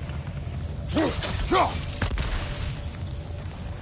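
A fire bursts into flames with a loud whoosh.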